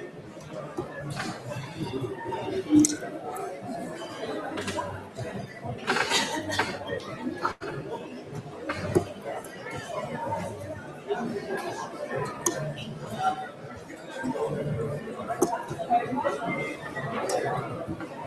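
Darts thud into a dartboard one after another.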